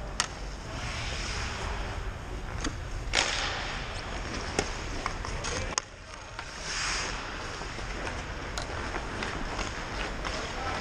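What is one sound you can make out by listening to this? Skate blades scrape and carve across ice.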